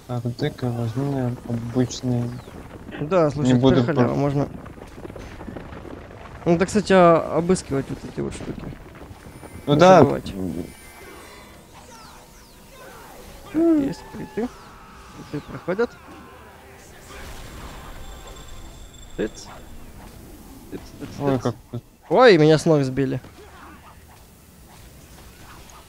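A magic spell whooshes and shimmers.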